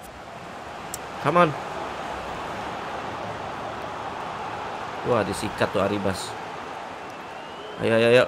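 A large stadium crowd murmurs and cheers steadily in the background.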